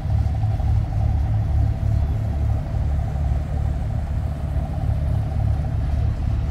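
A boat engine rumbles low and steady as a yacht glides past on water.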